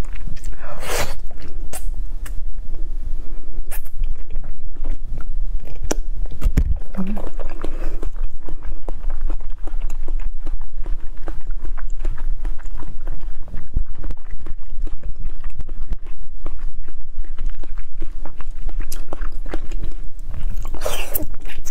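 A young woman chews with wet, sticky mouth sounds close to a microphone.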